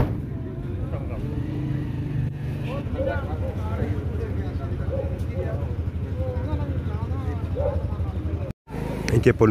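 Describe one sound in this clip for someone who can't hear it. Several men talk nearby at once.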